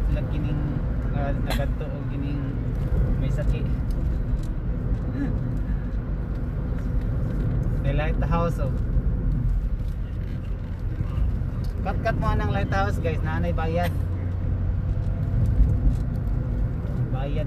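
A car engine hums and tyres rumble steadily on the road while driving.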